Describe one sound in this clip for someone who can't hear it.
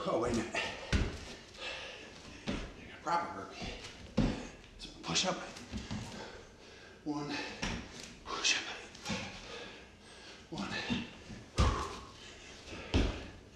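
A man breathes heavily with effort.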